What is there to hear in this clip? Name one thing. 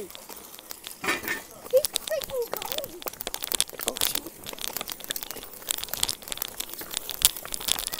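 Small plastic wheels rattle and scrape over a concrete pavement.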